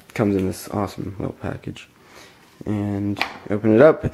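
A cardboard box lid slides off with a light scrape.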